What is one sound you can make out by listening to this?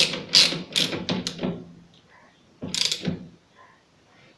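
Metal parts clink as a nut is fitted onto a wheel bolt by hand.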